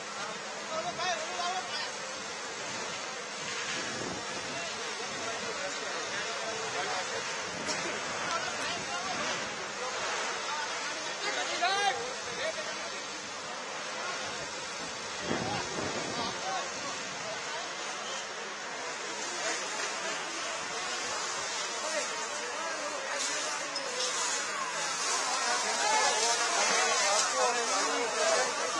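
A crowd of men talk and shout outdoors.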